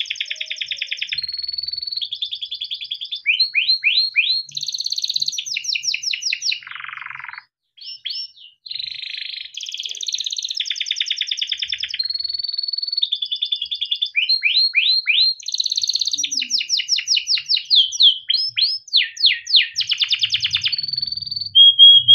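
A canary sings a long, fast song of trills, rapid chirps and whistles, close by.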